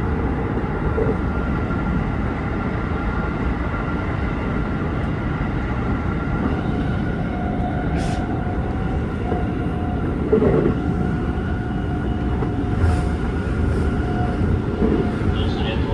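Train wheels clatter over rail joints now and then.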